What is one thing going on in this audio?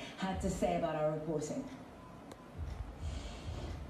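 A woman speaks calmly through a television loudspeaker.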